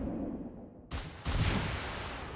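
Shells splash into water.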